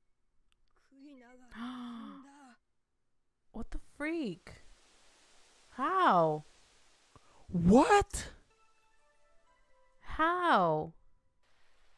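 A young woman exclaims in surprise close to a microphone.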